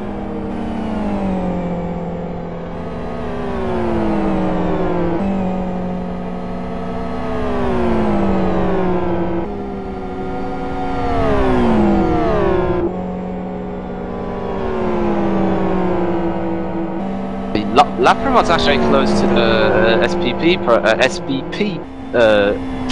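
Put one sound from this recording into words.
Racing car engines roar loudly, rising and falling in pitch as the cars shift gears and brake.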